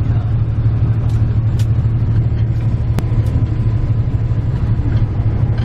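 A vehicle's engine rumbles steadily from inside as it drives along a road.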